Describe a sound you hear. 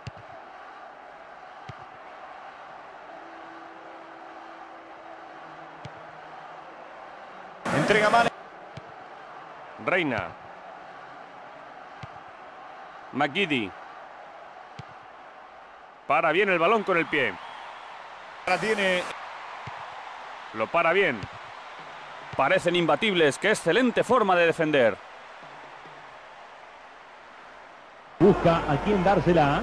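A football is kicked with soft thuds.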